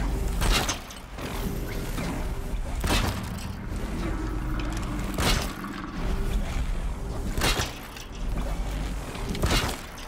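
A bowstring snaps as arrows are loosed, again and again.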